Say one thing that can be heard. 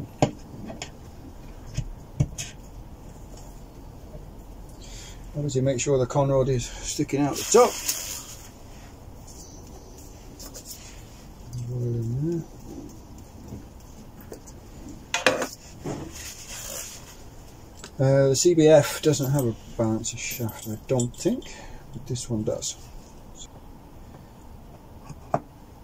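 Metal engine parts clink and knock as they are handled.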